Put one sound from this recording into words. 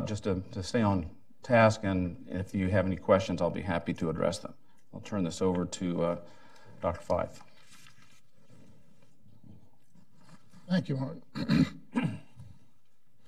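An older man speaks steadily into a microphone.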